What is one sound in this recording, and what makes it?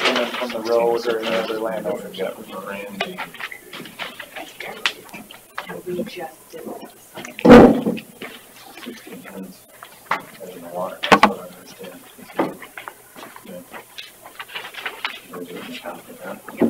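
Other men talk quietly farther off in the room.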